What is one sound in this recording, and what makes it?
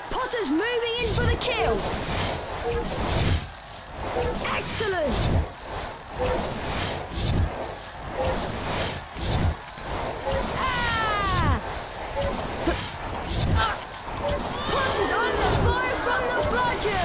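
Sparkling, whooshing chimes ring out again and again as a flyer swoops through glowing rings.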